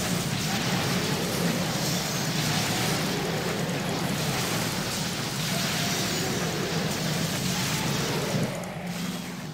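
Game battle sounds of spells and clashing weapons play continuously.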